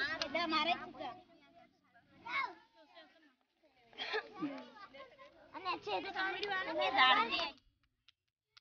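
Women and children talk together outdoors.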